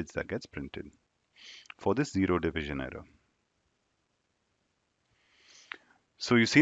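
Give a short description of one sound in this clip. A young man speaks calmly into a close microphone, with pauses.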